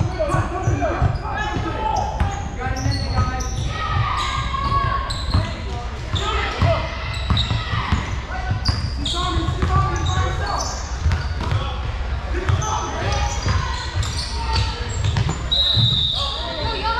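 Young girls shout and call out to each other across the court.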